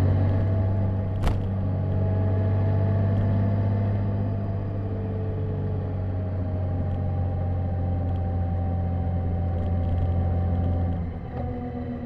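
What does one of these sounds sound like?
Wind rushes past a motorcycle rider.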